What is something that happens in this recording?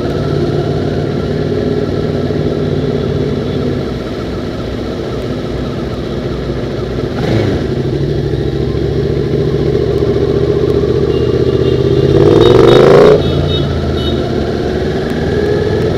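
A motorcycle engine drones steadily close by.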